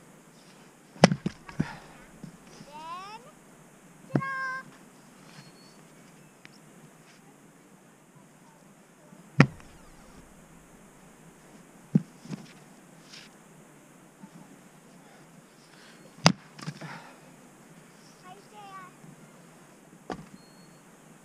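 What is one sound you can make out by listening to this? An axe splits firewood with sharp, heavy chops.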